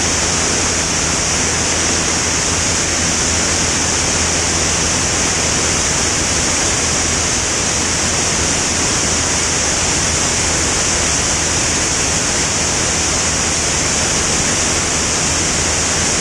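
A propeller engine drones loudly and steadily.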